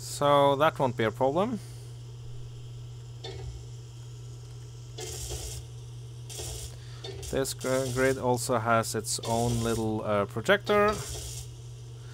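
A welding torch hisses and crackles in short bursts.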